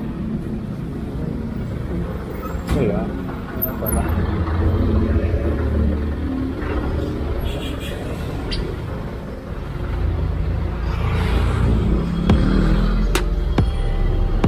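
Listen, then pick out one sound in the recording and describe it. A motor scooter engine hums steadily up close.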